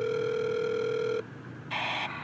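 A small loudspeaker plays a steady electronic tone.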